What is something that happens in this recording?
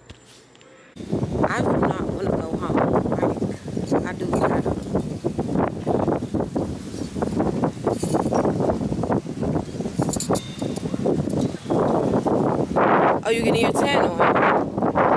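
Wind blows over the microphone outdoors.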